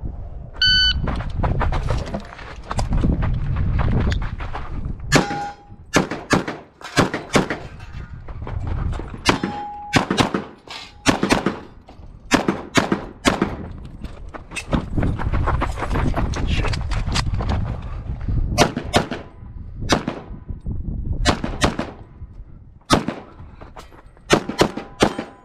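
A pistol fires rapid, loud shots outdoors.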